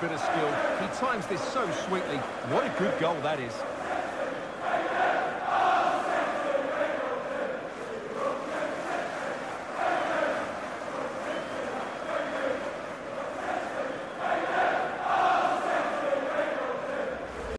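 A large crowd cheers and roars in a stadium, swelling loudly at times.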